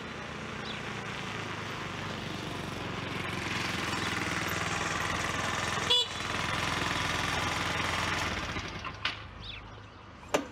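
A scooter engine hums steadily nearby.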